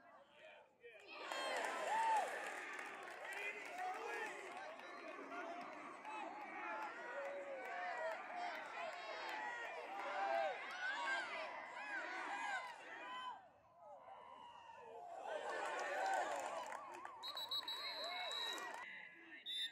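A crowd of young men cheers and shouts loudly outdoors.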